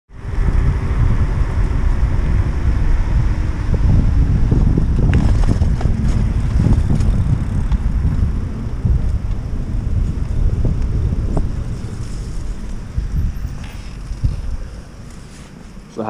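Bike tyres roll and crunch over pavement and dry leaves.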